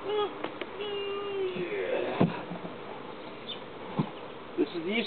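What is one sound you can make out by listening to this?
A wooden hive box thumps as it is set down.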